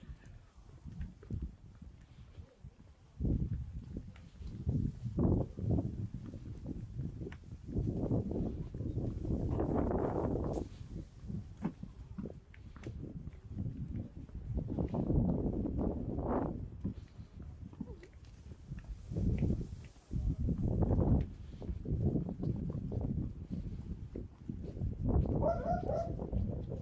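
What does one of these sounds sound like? Footsteps walk steadily on a concrete path.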